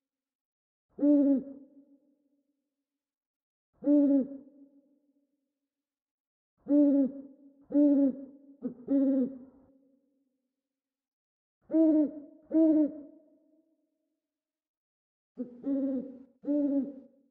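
An owl hoots in short, repeated calls.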